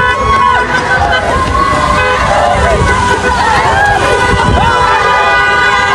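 A crowd of men and women shout and sing loudly outdoors.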